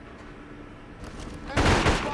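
Gunshots crack loudly at close range.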